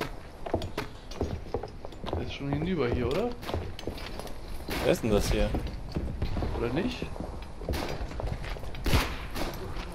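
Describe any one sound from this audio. Footsteps thud quickly on damp ground.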